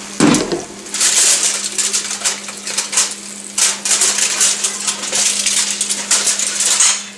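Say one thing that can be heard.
Aluminium foil crinkles.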